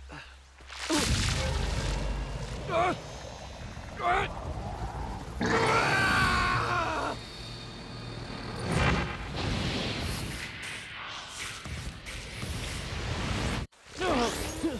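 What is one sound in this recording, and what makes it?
Crackling energy blasts whoosh loudly.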